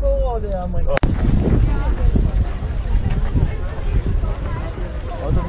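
A crowd of people chatters and walks outdoors.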